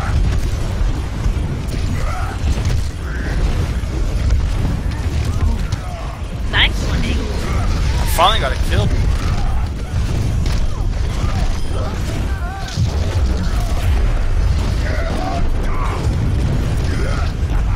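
Gunfire and blasts from a video game rattle throughout.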